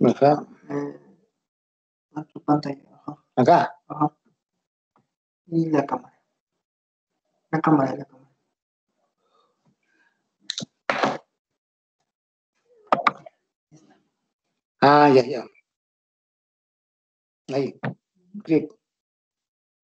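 An elderly man speaks calmly in short phrases with pauses, heard over an online call.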